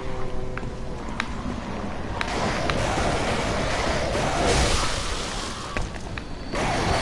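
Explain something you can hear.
Blades slash and strike flesh in sharp blows.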